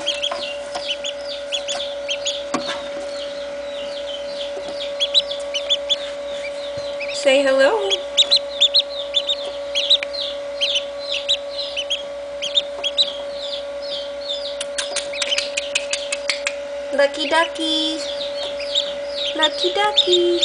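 A duckling peeps rapidly and shrilly, close by.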